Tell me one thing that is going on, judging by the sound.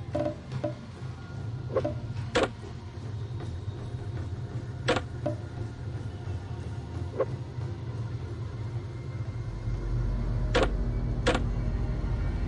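Short clicking sounds of items being picked up and dropped into place.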